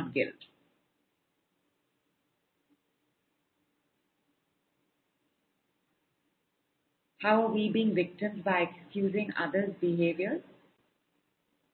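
A woman speaks calmly into a microphone, heard close up.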